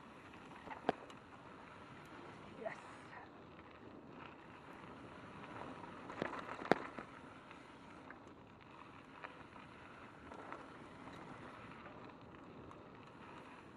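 Bicycle tyres roll and crunch steadily over a gravel trail.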